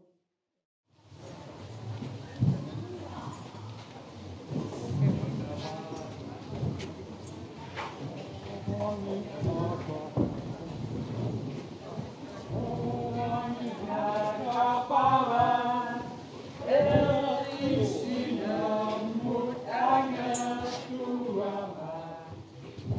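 A crowd of people chatter and move about in a large room.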